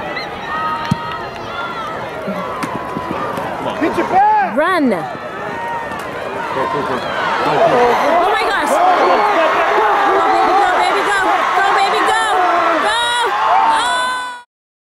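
A crowd cheers and shouts outdoors, growing louder as the play goes on.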